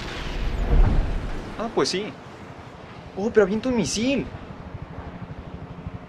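A rocket whooshes through the air.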